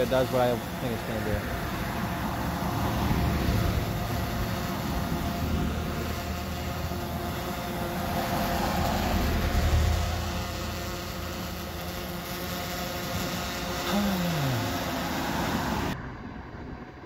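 Cars drive past on a road with a steady rush of tyres.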